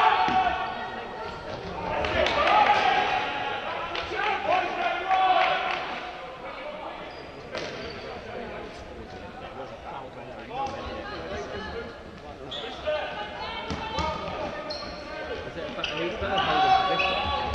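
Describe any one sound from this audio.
Players shout and call to each other across a large echoing hall.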